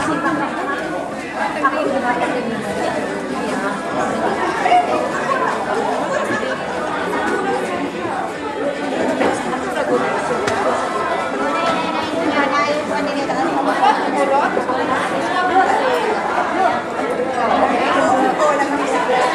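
A crowd of men and women chatters throughout a large echoing hall.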